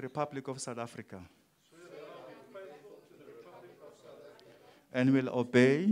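A man reads aloud steadily into a microphone.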